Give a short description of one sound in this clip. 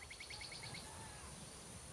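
Tall grass rustles as a soldier creeps through it.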